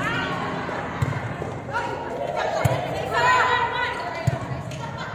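A volleyball is struck with sharp thuds.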